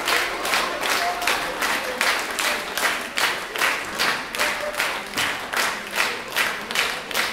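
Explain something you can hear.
An audience claps in a steady rhythm.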